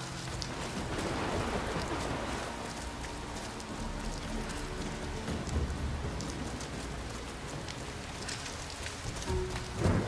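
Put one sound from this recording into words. Footsteps crunch on leaves and dirt.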